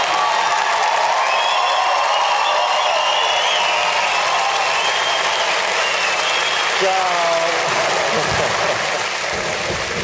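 A large audience applauds and cheers in an echoing hall.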